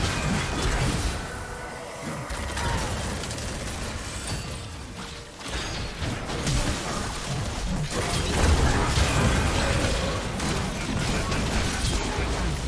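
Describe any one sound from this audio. Blows and impacts thud repeatedly.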